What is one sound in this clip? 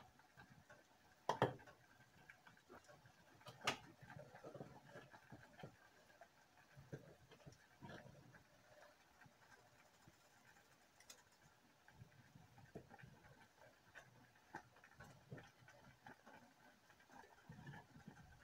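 A pot of water simmers and bubbles softly.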